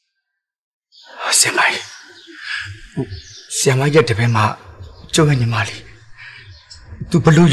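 A man speaks in an agitated, pleading voice close by.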